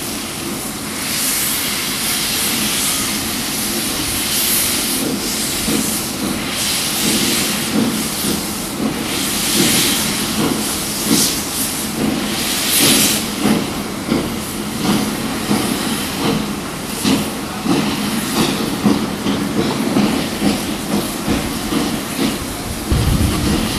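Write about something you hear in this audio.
Steam hisses loudly from a locomotive in bursts.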